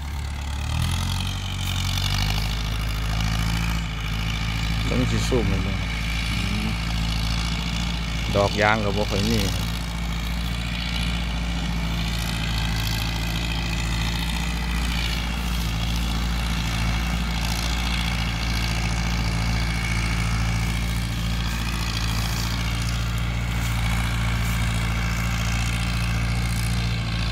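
A tractor engine rumbles steadily in the distance.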